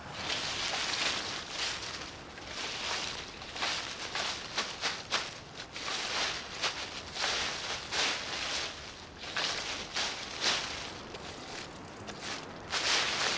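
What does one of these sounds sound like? A rake scrapes and rustles through dry leaves in repeated strokes.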